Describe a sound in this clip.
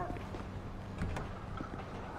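A truck door clicks open.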